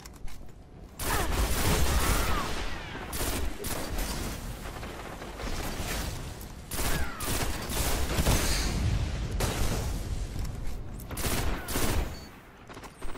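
Gunfire from a video game rifle rattles in loud bursts.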